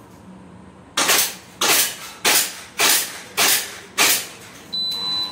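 Pistols fire a rapid series of sharp, loud shots that ring in an echoing room.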